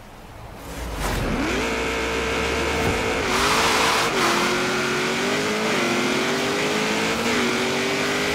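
A rally car engine revs hard, climbing and dropping sharply with each gear change.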